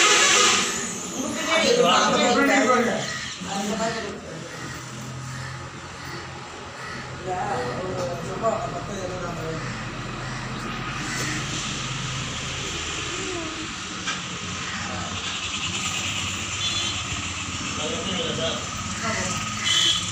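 Men and women chatter nearby.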